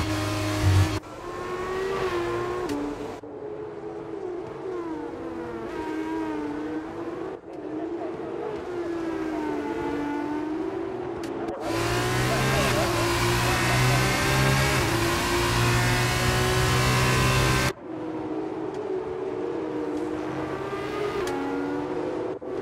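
Racing car engines whine past at a distance, rising and falling in pitch.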